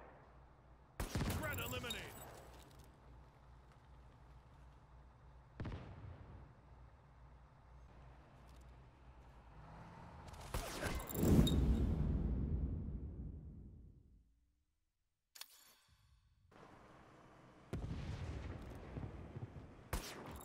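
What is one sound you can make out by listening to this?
Rifle shots crack loudly, with echoes rolling off buildings.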